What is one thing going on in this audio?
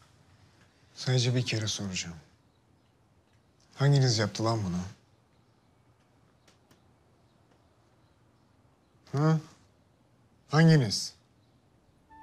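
A middle-aged man speaks in a low, tense voice close by.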